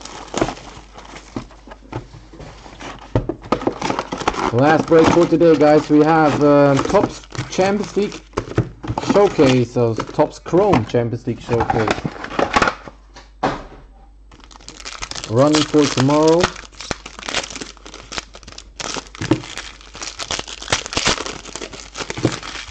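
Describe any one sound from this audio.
A foil card pack tears open.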